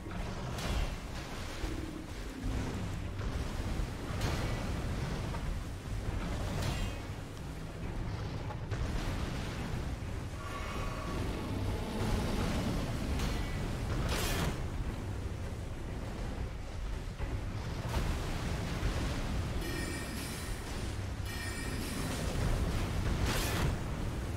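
A sword slashes and strikes with sharp impacts.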